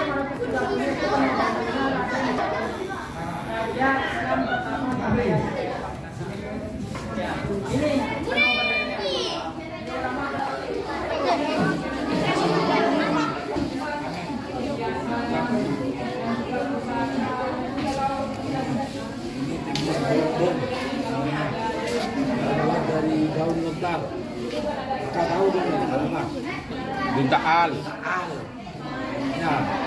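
Many children chatter together indoors, in an echoing room.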